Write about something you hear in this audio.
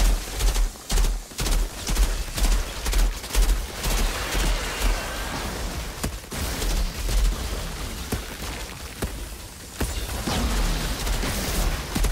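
A flamethrower roars in bursts.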